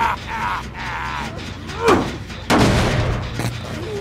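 A generator clanks and bangs loudly as it is struck.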